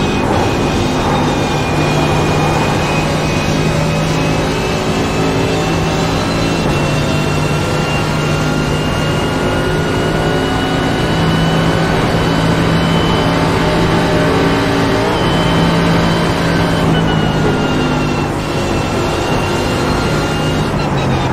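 A racing car engine roars at high revs, its pitch climbing slowly.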